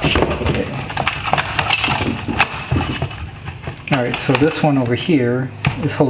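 Small hard parts click and rattle as they are handled.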